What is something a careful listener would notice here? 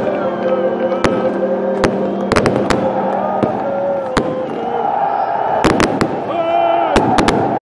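Firecrackers bang sharply again and again.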